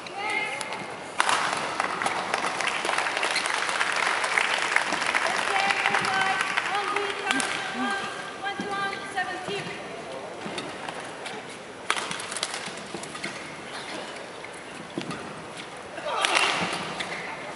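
A large crowd cheers and shouts in an echoing arena.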